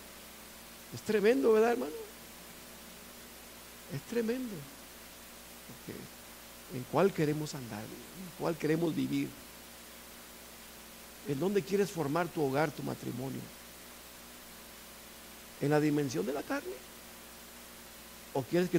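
A middle-aged man speaks with animation through a microphone, in phrases broken by pauses.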